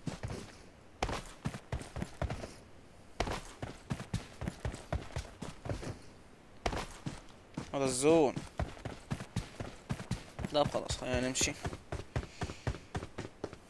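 Quick footsteps thud on hard ground.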